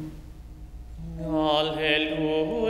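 A small congregation sings together in a large echoing room.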